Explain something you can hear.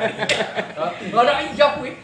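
A man laughs heartily close by.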